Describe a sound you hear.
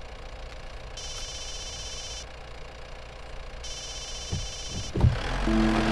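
A phone trills through a call.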